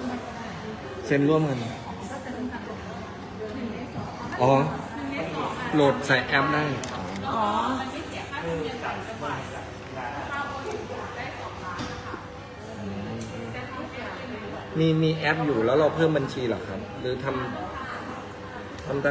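A young woman talks close to a phone microphone in short bursts.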